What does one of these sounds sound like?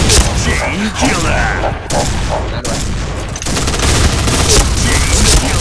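A minigun fires rapid, loud bursts of gunfire.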